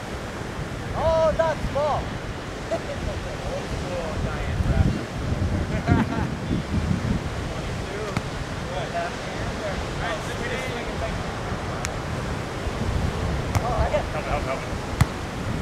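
Young men call out to each other from a distance.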